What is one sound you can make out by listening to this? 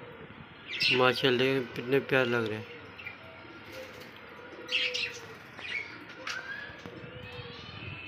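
A flock of budgerigars chirps and chatters.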